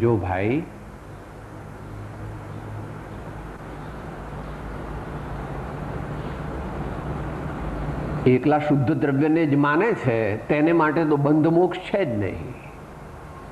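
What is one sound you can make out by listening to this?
An elderly man speaks close by in a slow, sing-song voice.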